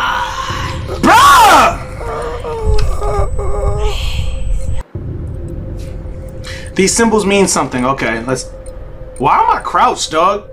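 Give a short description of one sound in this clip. A young man shouts and talks excitedly into a close microphone.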